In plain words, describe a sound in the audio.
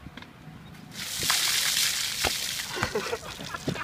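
Icy water splashes down from a bucket onto a man.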